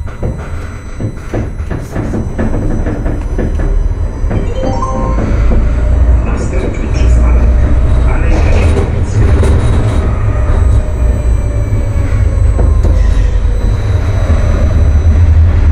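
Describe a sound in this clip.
A tram rumbles steadily along its rails, growing louder.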